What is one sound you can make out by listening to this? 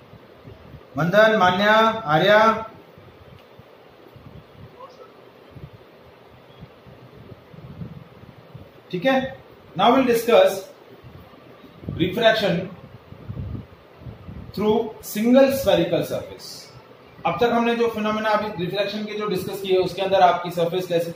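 A young man speaks calmly and explains, close to the microphone, with pauses.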